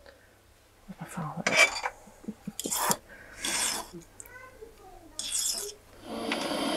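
A file rasps against metal.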